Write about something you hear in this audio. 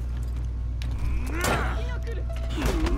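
A warrior grunts and shouts in combat.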